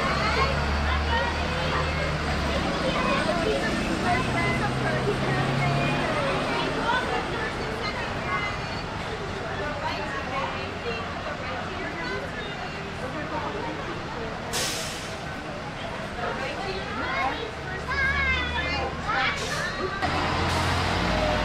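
A woman talks warmly with the children.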